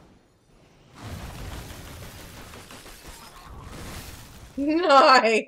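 A magical whooshing blast sweeps across.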